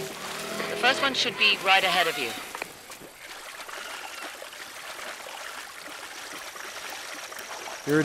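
Water splashes as a man wades through a swamp.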